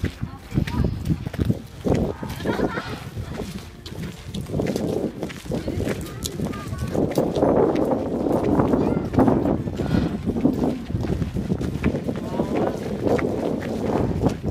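Footsteps crunch on sandy ground.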